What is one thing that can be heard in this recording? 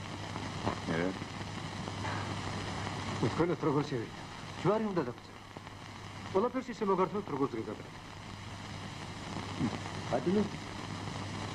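Men talk to each other in short, lively exchanges.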